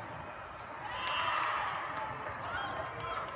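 Young women cheer and shout together.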